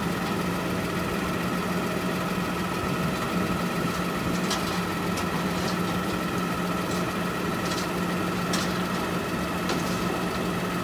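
A truck engine idles with a steady low hum.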